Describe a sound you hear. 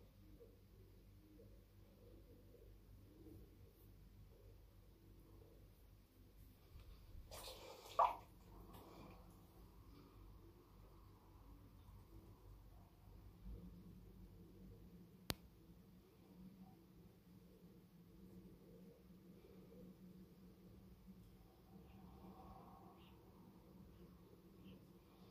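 A razor blade scrapes softly across stubble.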